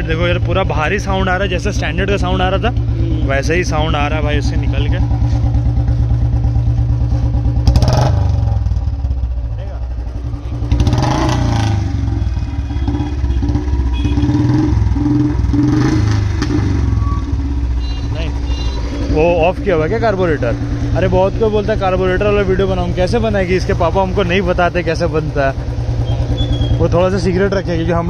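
A motorcycle engine idles with a steady low thumping.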